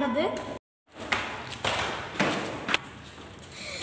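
Flip-flops slap on stairs.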